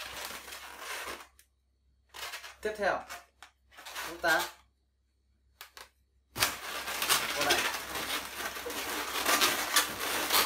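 Rubber balloons squeak and rub as they are twisted.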